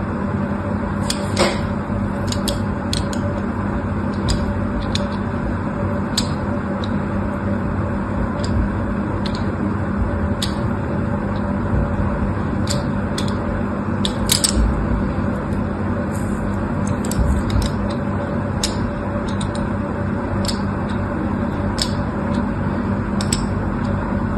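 A thin blade scratches lines into a bar of soap with crisp little clicks.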